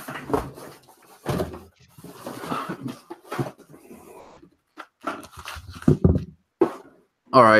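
Cardboard rustles and thumps as items are pulled from a box.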